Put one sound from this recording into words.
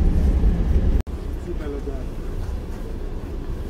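Traffic moves along a town street.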